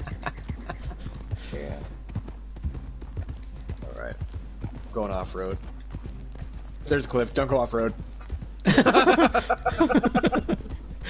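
Horse hooves thud steadily on a dirt track.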